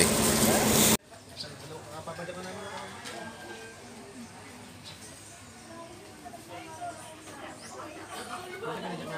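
Adults chatter quietly in the background.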